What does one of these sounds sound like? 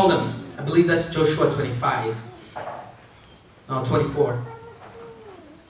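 A young man speaks with animation into a microphone, heard over a loudspeaker in an echoing room.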